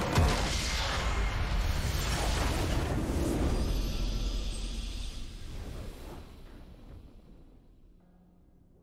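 A triumphant game victory sound swells and slowly fades.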